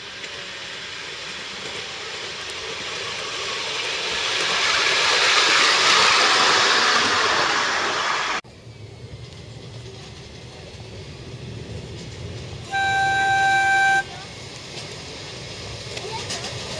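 A small ride-on train rattles along rails close by.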